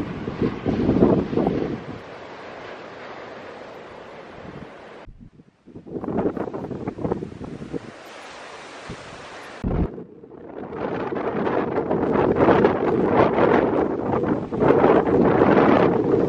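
Strong wind roars and buffets in gusts outdoors.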